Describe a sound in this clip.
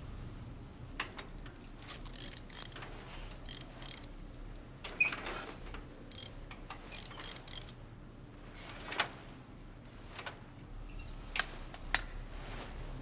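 Metal tools click and clank against a motorcycle.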